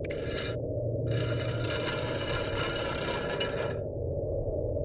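A wooden latch slides open with a scraping rattle.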